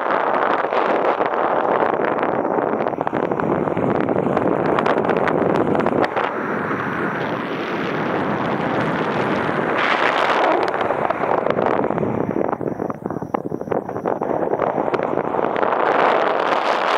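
Wind rushes and buffets loudly past the microphone in flight.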